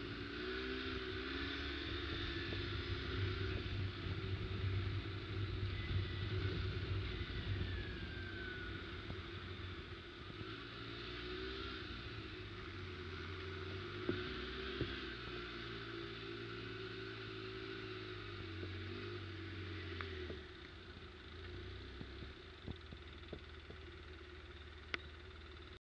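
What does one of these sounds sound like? An all-terrain vehicle engine rumbles steadily up close, with its pitch rising and falling.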